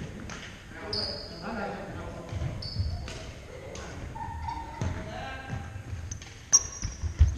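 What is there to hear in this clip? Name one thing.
Young men call out to one another across a large echoing hall.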